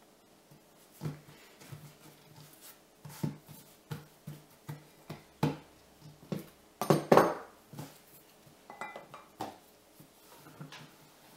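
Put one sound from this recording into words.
Dough thumps and pats on a table as hands knead and press it.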